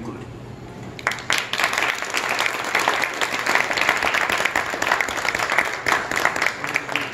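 An audience claps its hands.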